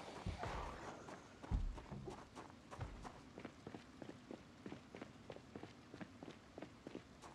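Footsteps tread at a steady pace on hard ground.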